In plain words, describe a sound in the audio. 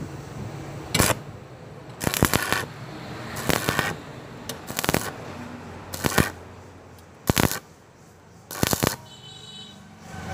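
An electric welding arc crackles and hisses in short bursts.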